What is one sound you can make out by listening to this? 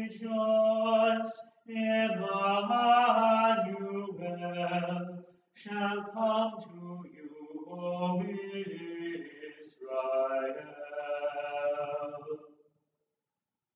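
A woman sings slowly in an echoing room.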